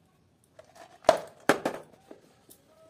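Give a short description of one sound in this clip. A plastic press snaps shut with sharp clicks.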